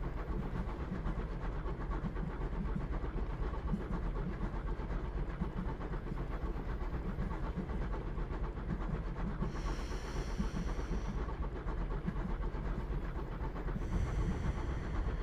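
A train's wheels rumble over rails.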